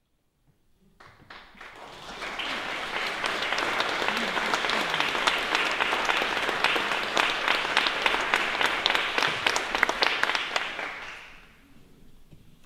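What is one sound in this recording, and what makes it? An audience applauds in a large hall, then the applause dies away.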